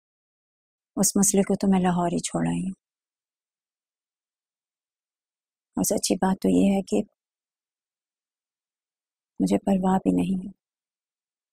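A young woman speaks calmly and seriously nearby.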